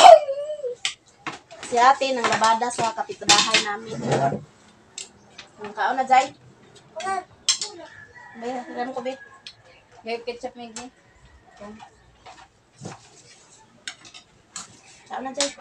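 Spoons clink against plates.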